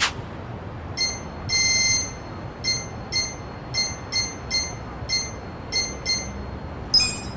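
Short electronic menu beeps tick in quick succession.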